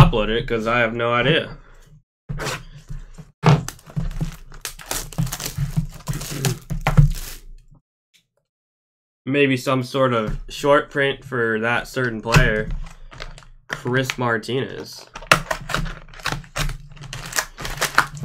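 Cardboard scrapes and rustles as hands handle a box.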